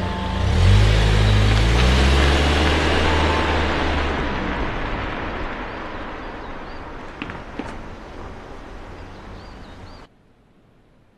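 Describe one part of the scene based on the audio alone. A car drives away and fades into the distance.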